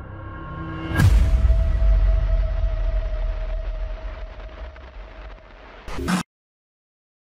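Television static hisses loudly.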